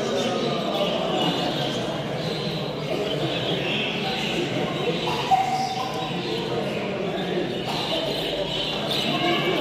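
Budgies chatter and chirp busily nearby.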